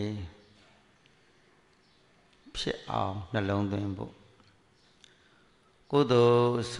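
An elderly man speaks slowly and calmly into a microphone, in short phrases with pauses.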